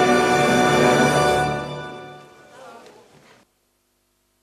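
A choir sings together in a large echoing hall, with the song fading out.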